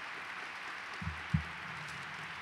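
Two dull thuds knock against a microphone.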